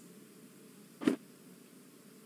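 A paper map rustles briefly as it is lifted.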